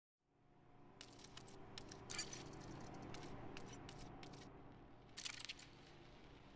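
Short, sharp menu clicks sound now and then.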